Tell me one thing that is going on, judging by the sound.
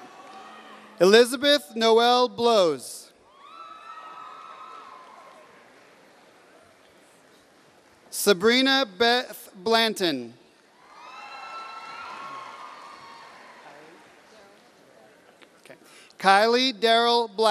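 A man reads out names loudly through a microphone in a large echoing hall.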